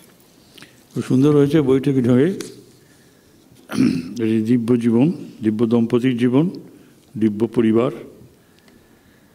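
A man chants slowly through a microphone in a large echoing hall.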